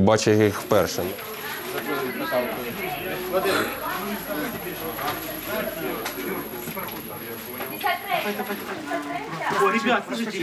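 Men talk in the background.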